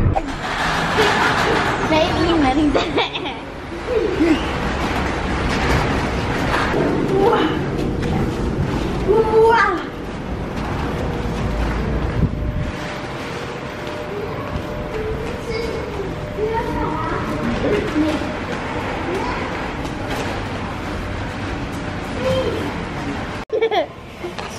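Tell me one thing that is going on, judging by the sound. A shopping cart's wheels rattle along a hard floor.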